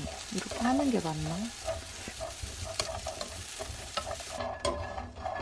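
Pecans sizzle and crackle in a hot pan.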